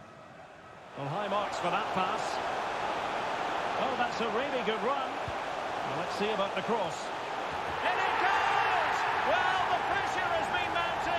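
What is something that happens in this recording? A large crowd roars loudly as an attack closes in on goal.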